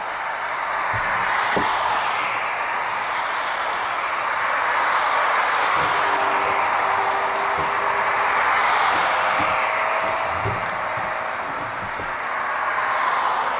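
Cars drive past on a road nearby, their tyres hissing.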